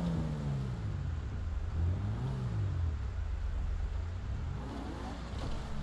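A car engine drones and revs as it drives over rough ground.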